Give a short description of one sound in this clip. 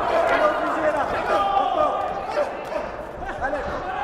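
Boxing gloves thud against a body as two boxers exchange punches.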